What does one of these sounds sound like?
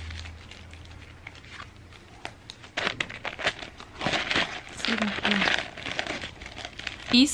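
Tissue paper rustles and crinkles close by.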